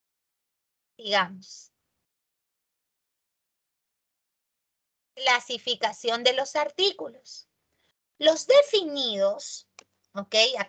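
A woman lectures calmly over an online call.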